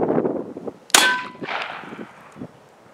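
A gun fires a loud shot that rings out across open ground.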